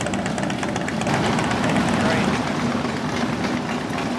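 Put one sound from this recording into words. A motorcycle engine revs as a bike pulls away.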